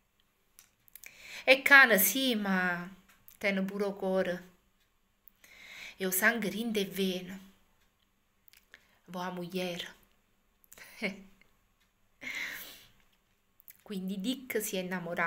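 A woman speaks calmly and warmly close to a microphone, with pauses.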